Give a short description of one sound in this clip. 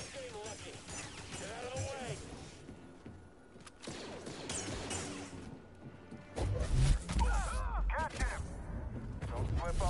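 Blasters fire in rapid bursts.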